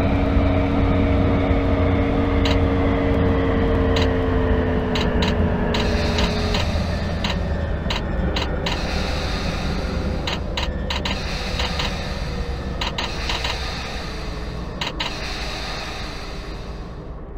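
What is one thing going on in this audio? A train rumbles along the rails and slowly comes to a stop.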